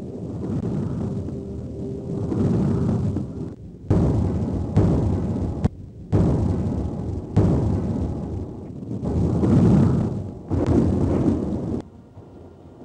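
Heavy guns fire with deep, booming blasts.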